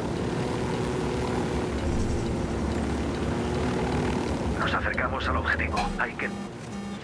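A helicopter's engine and rotor drone steadily.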